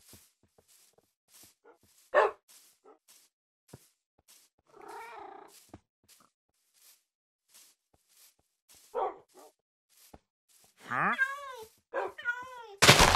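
Footsteps crunch on grass at a steady walking pace.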